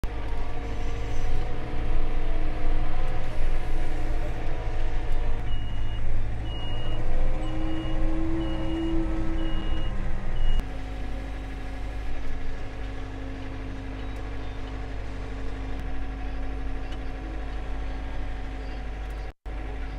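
A tractor's diesel engine rumbles and revs nearby.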